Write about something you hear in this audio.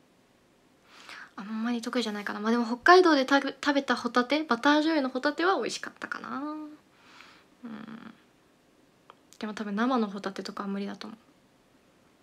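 A young woman talks close to a microphone, with animation, in short bursts.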